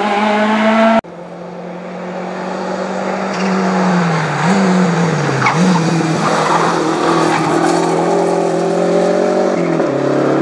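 Another rally car engine revs hard and roars past close by.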